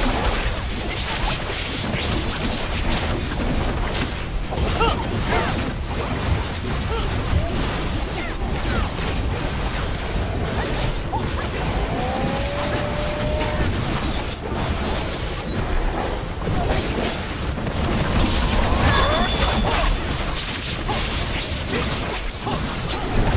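Spell blasts and weapon clashes crackle and boom in a game battle.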